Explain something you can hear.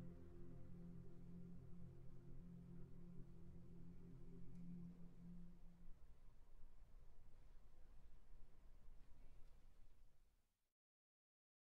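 A large choir sings a sustained chord in a reverberant hall, then the sound fades away into silence.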